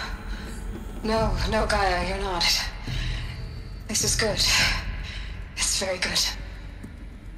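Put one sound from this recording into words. A woman speaks calmly through a slightly electronic-sounding voice.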